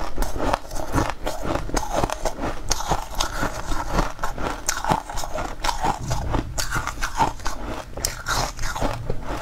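Crumbly chunks crackle and squeak as a young woman's fingers break them.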